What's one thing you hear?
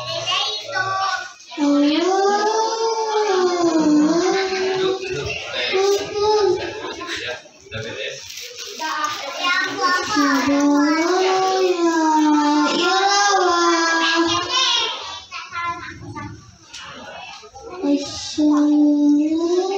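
A young boy sings loudly in a high, wavering voice.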